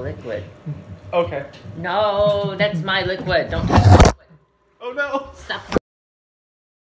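A young woman talks and laughs loudly close by.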